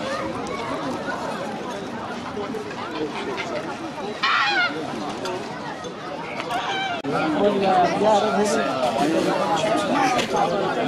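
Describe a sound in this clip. Starlings chirp, whistle and chatter nearby.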